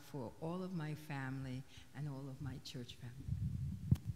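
A woman speaks calmly into a microphone in an echoing hall.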